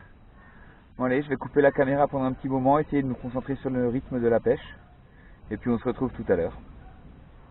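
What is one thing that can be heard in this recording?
A man talks calmly to a nearby microphone, outdoors.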